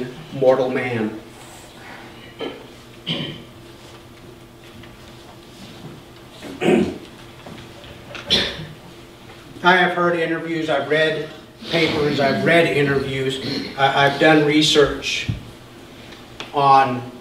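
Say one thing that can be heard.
A man speaks calmly into a microphone in a room with a slight echo, pausing between phrases.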